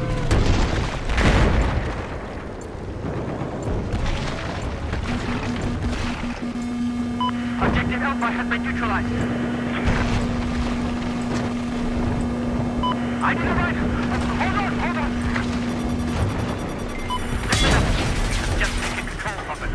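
Walls crumble and debris crashes down.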